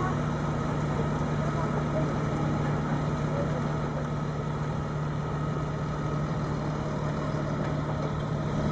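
A hydraulic crane arm whines as it moves.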